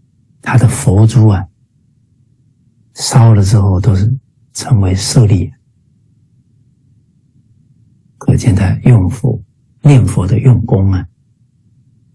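A middle-aged man speaks calmly in short phrases, close to the microphone, as if over an online call.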